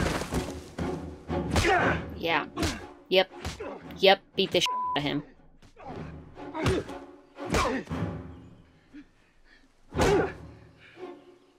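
A man shouts and speaks with strain.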